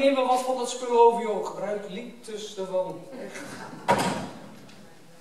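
A man speaks loudly.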